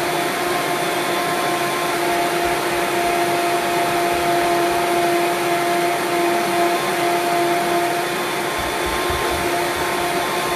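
A blender motor whirs steadily.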